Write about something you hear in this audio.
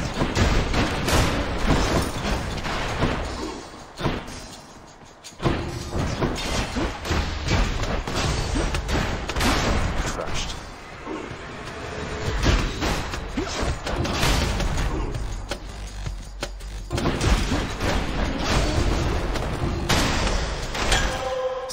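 Blasts and sharp hits crash in quick bursts.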